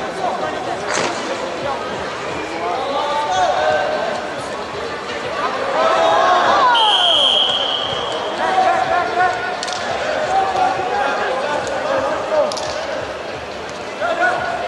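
Several people cheer and shout with excitement in a large echoing hall.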